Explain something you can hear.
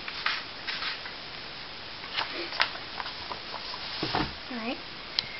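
Paper pages rustle and flap as a book's pages are turned by hand.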